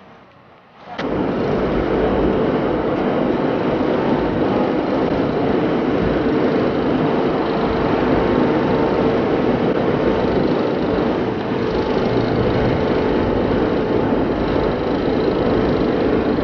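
A car engine runs at a low, steady idle.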